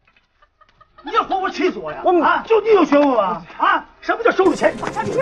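A young man shouts back.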